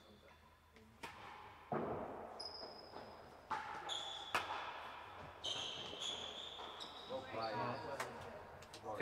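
A ball is struck hard and bounces with an echo in a large hall.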